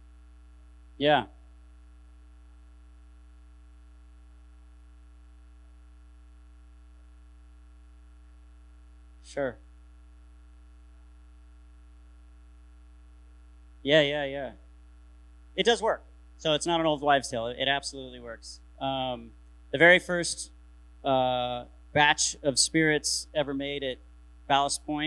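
A man speaks through a microphone, pausing often.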